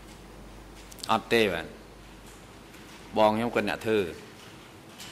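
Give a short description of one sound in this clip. A man answers briefly into a microphone.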